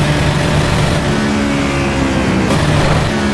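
A racing car engine drops in pitch as the car slows and shifts down.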